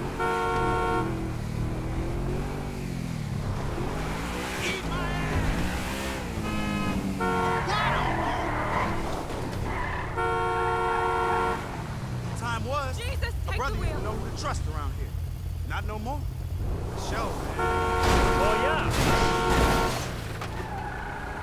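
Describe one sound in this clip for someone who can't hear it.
A sports car engine hums and revs as the car drives.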